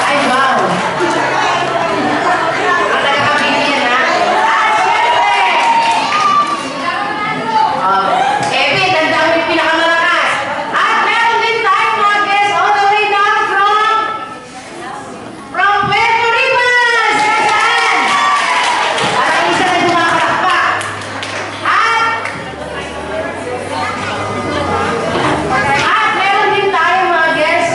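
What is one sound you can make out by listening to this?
A crowd of adults and children chatter and call out in a large echoing hall.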